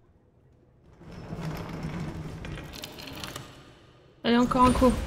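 A wooden crank creaks and grinds as it turns.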